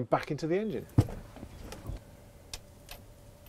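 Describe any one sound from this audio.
A spark plug is screwed into an engine.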